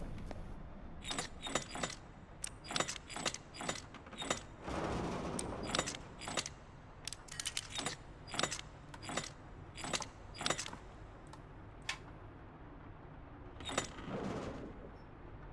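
A metal dial clicks as it turns, again and again.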